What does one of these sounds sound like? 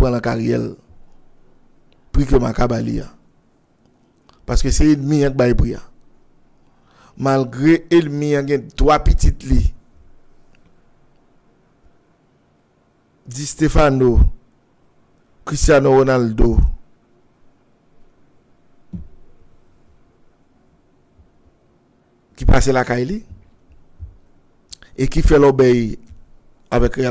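A middle-aged man speaks with animation close to a microphone, in short bursts with pauses.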